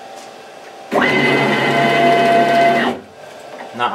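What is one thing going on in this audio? A machine's motor whirs loudly, then stops.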